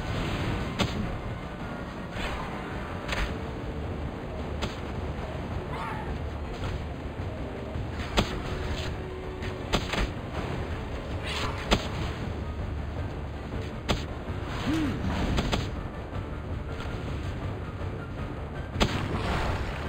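Gunshots crack sharply at irregular intervals.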